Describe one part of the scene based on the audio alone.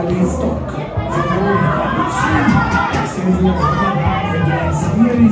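Spectators chatter nearby outdoors.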